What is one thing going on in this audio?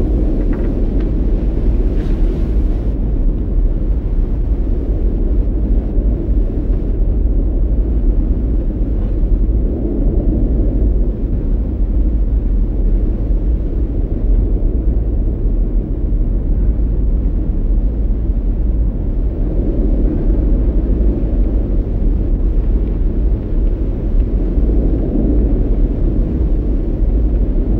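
A volcano rumbles low and steadily.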